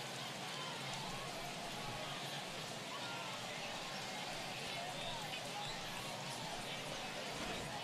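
A crowd cheers and roars in a large stadium.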